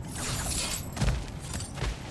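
A heavy blow lands with a deep thud.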